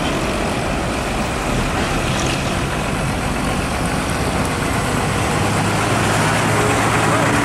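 A heavy truck's diesel engine rumbles as it turns slowly past, close by.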